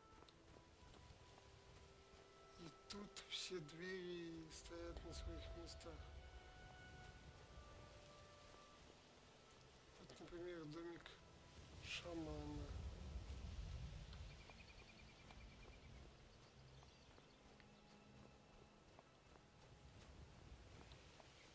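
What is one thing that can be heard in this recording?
Footsteps crunch steadily on snow.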